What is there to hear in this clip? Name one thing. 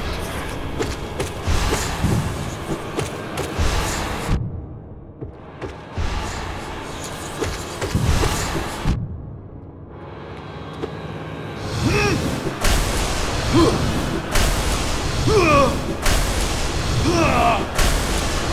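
Sword slashes swish and strike with sharp hits.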